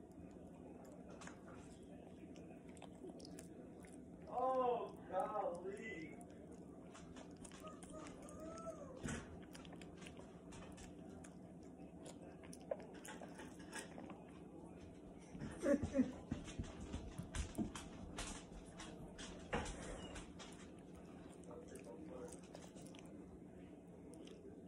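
A small dog licks and chews food wetly from a hand.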